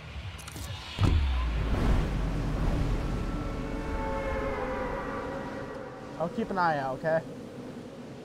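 Wind rushes steadily past a falling figure.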